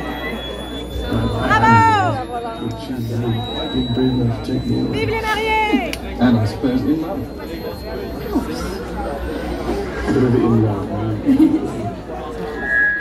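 Music with a thumping beat plays through loudspeakers.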